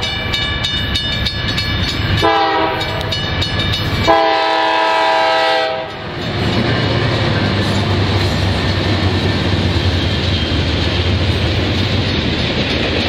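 A diesel locomotive engine rumbles past up close.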